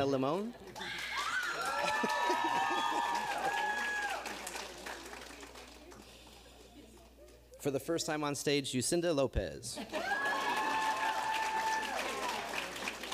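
People in an audience cheer and whoop loudly.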